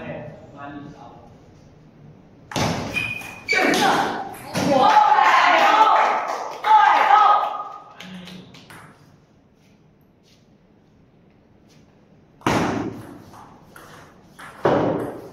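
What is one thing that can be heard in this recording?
A ping pong ball clicks sharply back and forth off a table and paddles.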